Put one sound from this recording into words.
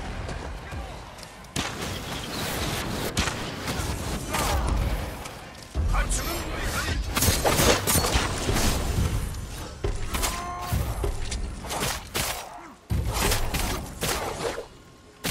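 Swords clash and slash in quick strikes.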